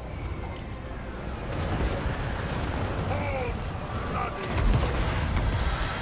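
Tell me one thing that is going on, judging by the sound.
A loud battle rumbles with clashing weapons and booming blasts.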